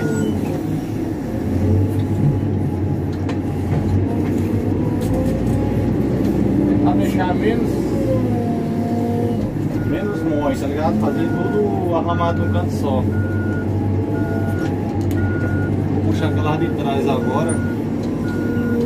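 A heavy machine's diesel engine rumbles steadily and close by.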